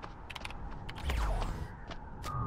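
A magic blast bursts with a whoosh.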